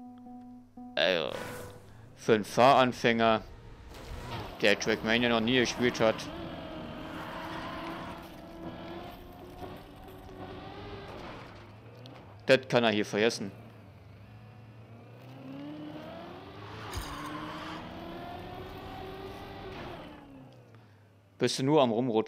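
A racing car engine hums and revs up and down.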